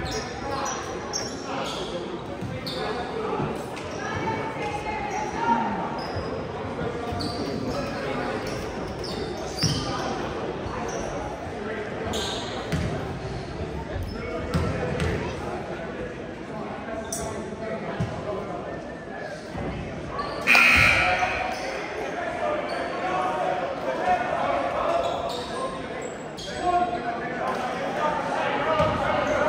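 A crowd of spectators murmurs and chatters in a large echoing gym.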